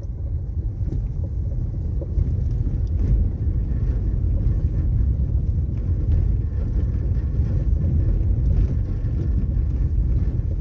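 Tyres rumble and rattle over a cobbled street.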